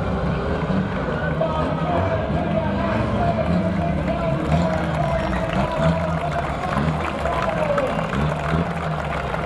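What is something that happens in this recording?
Engines roar loudly as old vans race.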